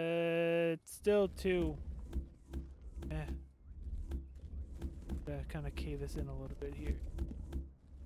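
A man talks casually through a close microphone.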